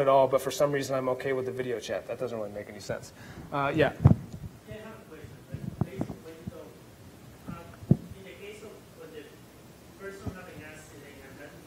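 A middle-aged man speaks with animation into a microphone in a large echoing hall.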